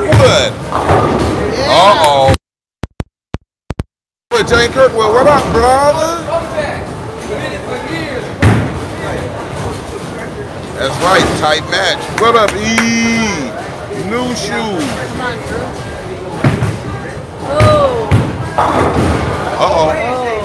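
A bowling ball rolls down a lane.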